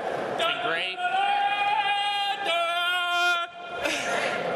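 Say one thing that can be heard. A young man yells loudly.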